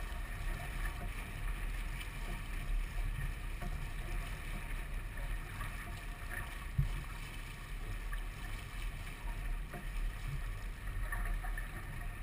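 Water rushes and splashes against a moving boat's hull.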